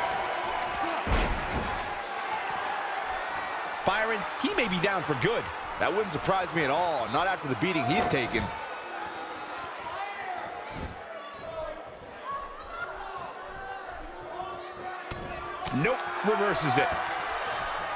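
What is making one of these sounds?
Heavy thuds of bodies slamming onto a wrestling ring mat ring out now and then.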